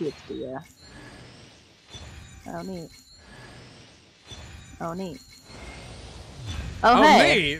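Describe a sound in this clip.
A bright magical chime and whoosh ring out in bursts.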